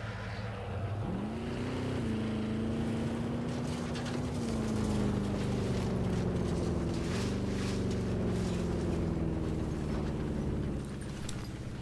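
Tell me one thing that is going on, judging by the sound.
An off-road vehicle engine hums as it drives over rough ground.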